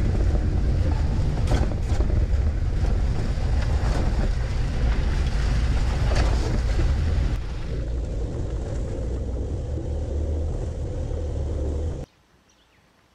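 A vehicle rumbles loudly over a rough gravel road, heard from close underneath.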